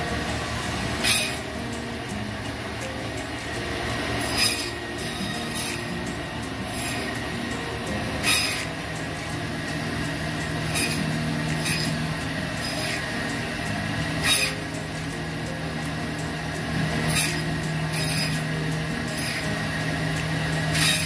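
A band saw blade cuts through bone with short, sharp buzzing bursts.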